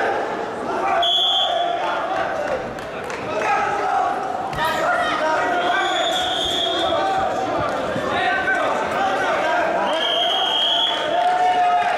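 A referee blows a whistle in sharp bursts.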